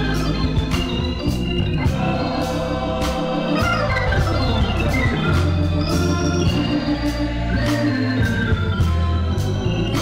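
A choir of men and women sings together.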